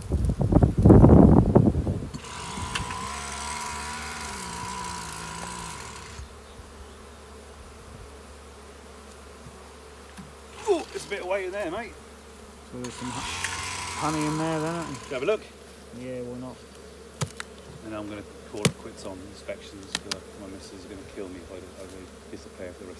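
Bees buzz around a hive.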